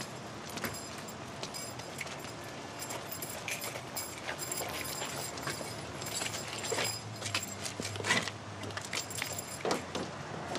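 Shackle chains clink and jingle with each step.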